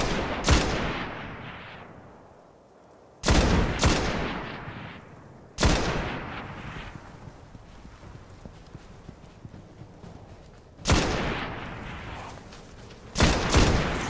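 A heavy rifle fires loud single shots that echo and fade.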